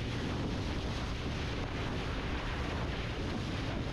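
Water splashes and churns in a boat's wake.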